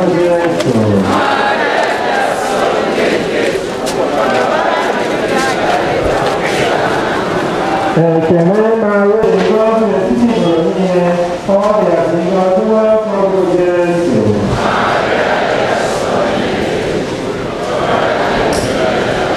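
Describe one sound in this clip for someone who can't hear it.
A large crowd murmurs and chatters.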